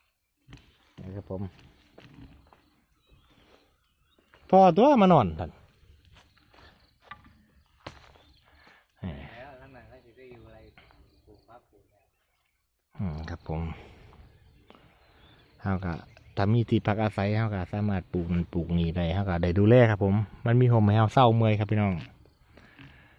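A man talks nearby in a calm voice.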